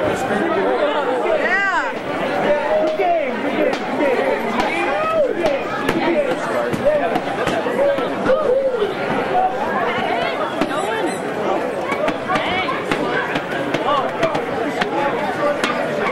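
A large crowd chatters and cheers loudly in a big echoing hall.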